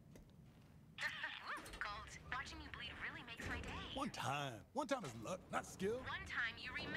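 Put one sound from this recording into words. Game characters talk loudly.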